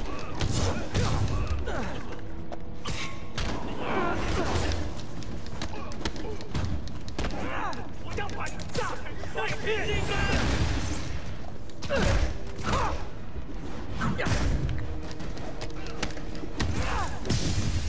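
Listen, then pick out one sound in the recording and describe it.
Punches and kicks land with heavy thuds again and again.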